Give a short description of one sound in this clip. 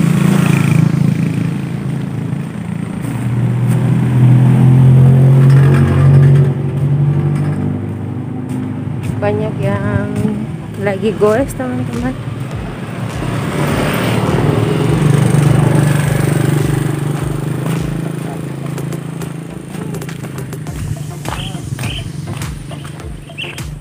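A motorbike engine hums steadily while riding.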